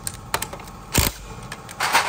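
An impact wrench whirs briefly.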